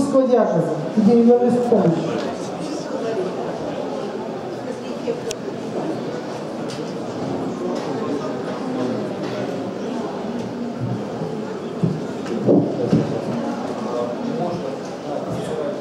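A woman speaks into a microphone over a loudspeaker.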